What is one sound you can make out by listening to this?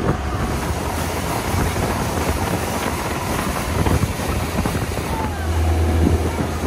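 Water churns and splashes in a boat's wake.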